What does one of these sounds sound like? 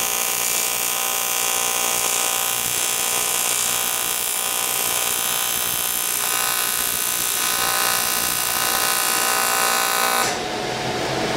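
A welding arc buzzes and hisses steadily.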